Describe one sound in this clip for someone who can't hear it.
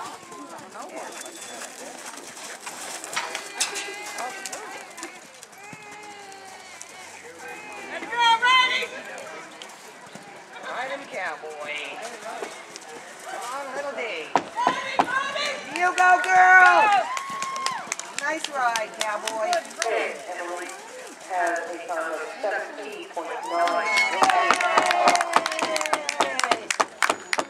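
A horse gallops on soft dirt with thudding hoofbeats.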